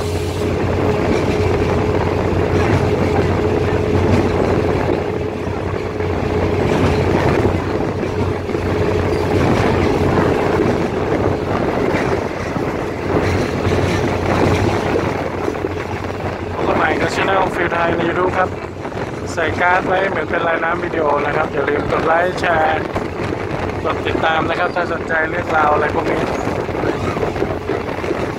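A train rumbles and clatters steadily along the tracks.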